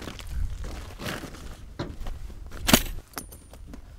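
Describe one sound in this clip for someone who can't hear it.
A paper bag is set down on gravel with a thud.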